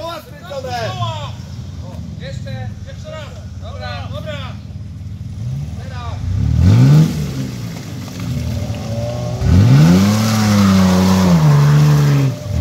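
An off-road vehicle's engine revs hard as it climbs out of a muddy ditch.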